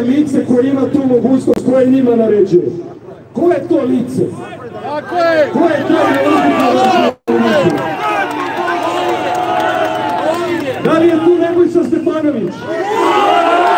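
A man speaks forcefully into a microphone through a loudspeaker outdoors.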